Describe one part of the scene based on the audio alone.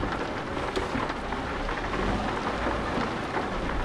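Windscreen wipers swish across glass.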